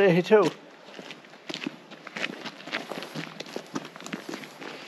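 Footsteps crunch on dry ground outdoors.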